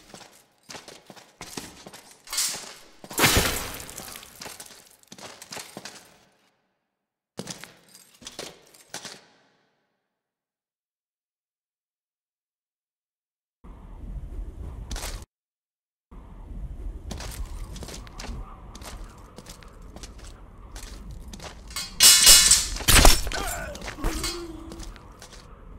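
Metal swords clash and ring sharply, again and again.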